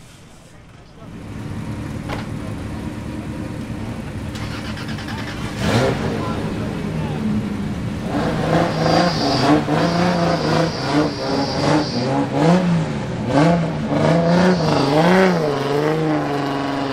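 A race car engine starts and idles with a deep, lumpy rumble.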